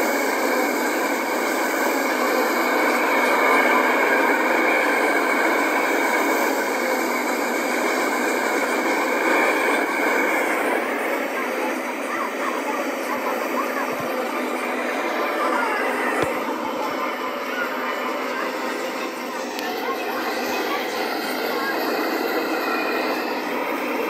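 A freight train rumbles and clatters steadily past, heard through small speakers in a room.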